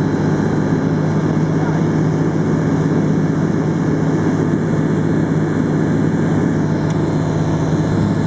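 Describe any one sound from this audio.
Wind rushes past the cockpit.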